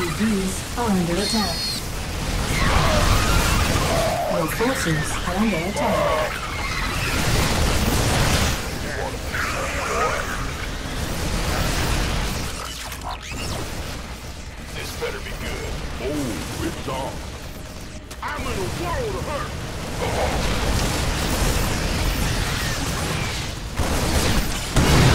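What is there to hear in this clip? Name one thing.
Rapid gunfire crackles in a battle.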